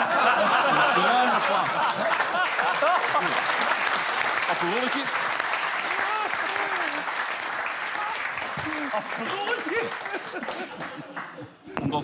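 A studio audience laughs and applauds loudly.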